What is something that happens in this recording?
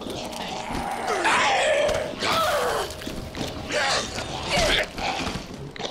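A young woman cries out and struggles in pain close by.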